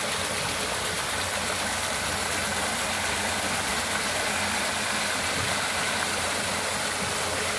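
A paddle wheel churns water, splashing loudly and steadily.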